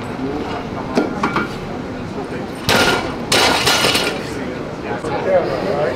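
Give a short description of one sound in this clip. A barbell drops and thuds on the floor.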